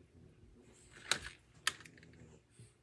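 A small plastic dispenser clicks and rattles as it is picked up and set down.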